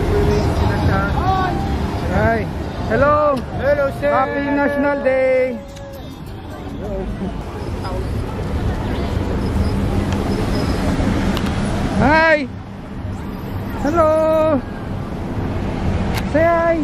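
Car horns honk repeatedly in busy traffic.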